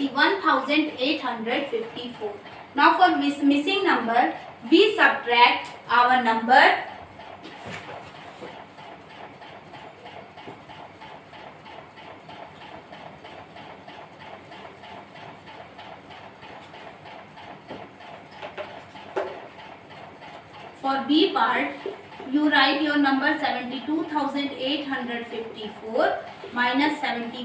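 A woman speaks calmly and clearly, close by, as if explaining.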